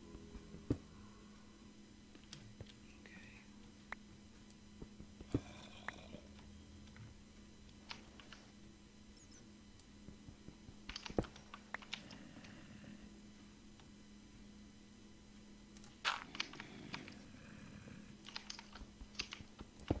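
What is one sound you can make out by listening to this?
A pickaxe chips at stone blocks with quick clicking taps.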